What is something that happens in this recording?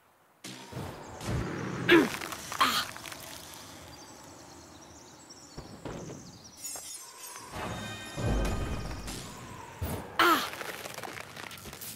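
Icy blasts crackle and hiss.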